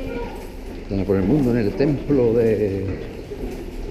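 A woman talks close by, her voice echoing in a stone tunnel.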